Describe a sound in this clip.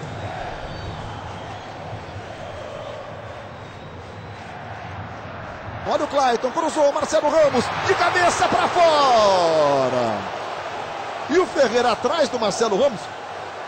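A large crowd murmurs steadily outdoors.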